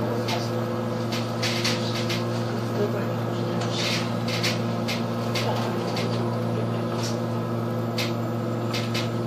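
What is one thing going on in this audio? The bus rattles and creaks as it drives.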